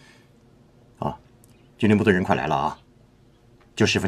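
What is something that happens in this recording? A middle-aged man answers in a calm, measured voice.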